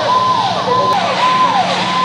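Water sprays hard from a fire hose.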